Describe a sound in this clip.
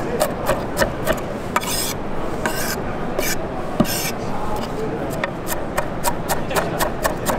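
A knife chops quickly and rhythmically on a wooden board.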